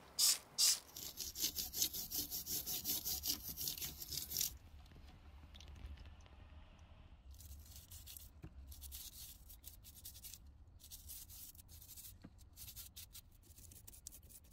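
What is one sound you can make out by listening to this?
A wire brush scrubs rusty metal in quick strokes.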